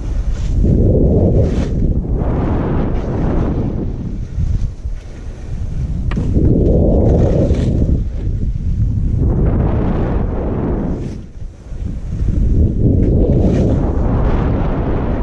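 Skis carve and hiss through snow in swelling sweeps.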